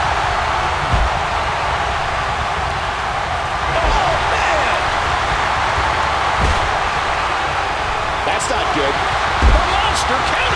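Heavy thuds sound as wrestlers slam onto the ring mat.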